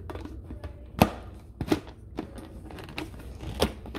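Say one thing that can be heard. A lid snaps onto a blender jar.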